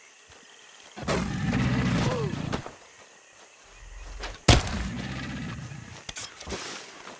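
An alligator lets out deep, rumbling growls.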